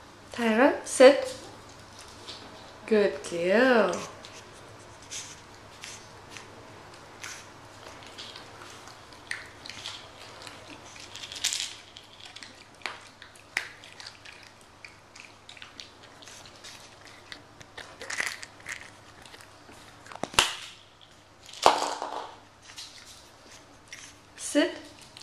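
A puppy whines and yelps in high, rising and falling cries.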